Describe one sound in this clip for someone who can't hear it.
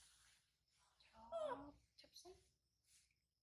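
A baby monkey squeals briefly up close.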